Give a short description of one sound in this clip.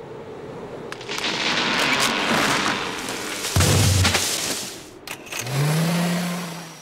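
A small car engine revs and drives off.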